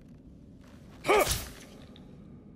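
A sword strikes with a sharp ringing crash.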